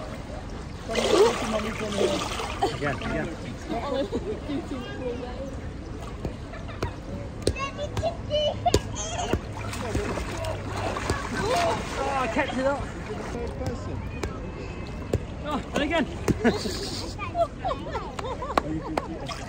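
Water splashes in a pool.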